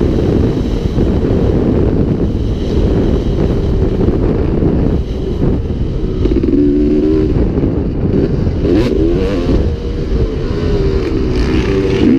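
A dirt bike engine roars and revs up and down as the bike rides fast over dirt.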